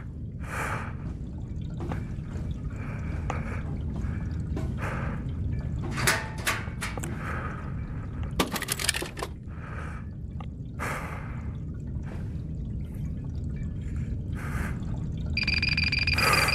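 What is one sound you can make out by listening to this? An energy blade hums with a low, steady drone.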